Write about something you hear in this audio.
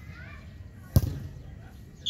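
A football is kicked with a thud.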